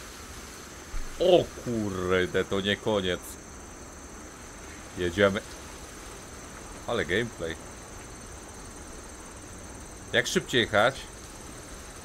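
A man speaks close to a microphone in short, animated bursts.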